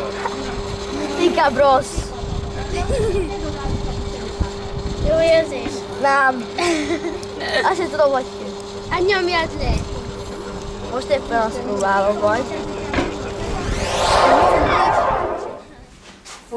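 A potter's wheel hums steadily.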